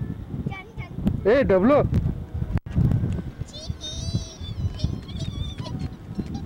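A young child calls out in a high voice nearby, outdoors.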